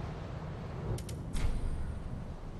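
A menu clicks sharply.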